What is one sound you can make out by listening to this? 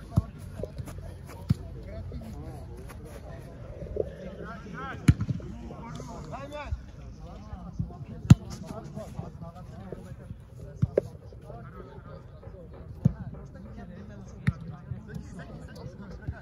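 A football is kicked with sharp thuds outdoors.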